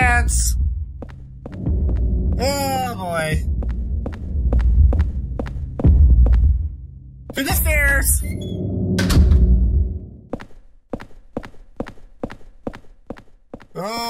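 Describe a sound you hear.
Footsteps tread at a steady pace on a hard floor.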